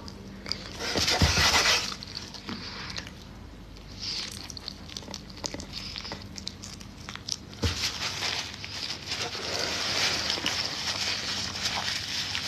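A woman chews and munches food close to a microphone.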